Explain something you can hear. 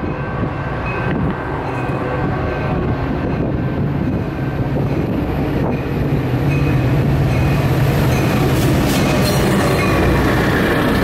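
A diesel locomotive engine rumbles loudly as a train approaches and passes close by.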